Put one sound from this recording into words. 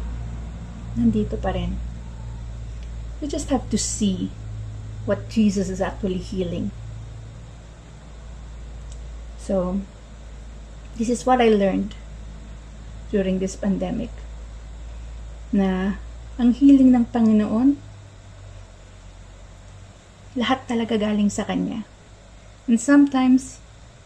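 A young woman speaks calmly and warmly into a close microphone, with pauses.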